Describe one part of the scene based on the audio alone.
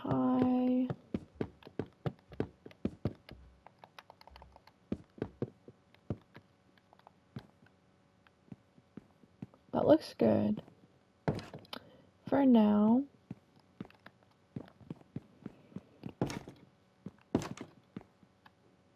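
Footsteps tap quickly on a wooden floor.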